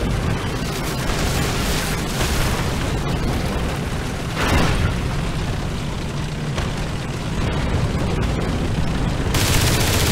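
Tank tracks clatter and grind over the ground.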